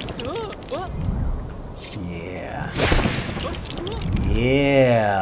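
Small coins tinkle as they are collected.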